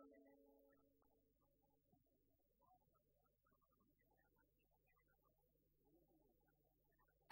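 A folk band plays a lively tune, heard from afar in a large hall.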